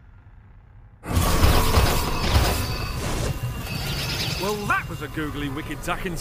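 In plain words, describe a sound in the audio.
A magic portal swirls and roars.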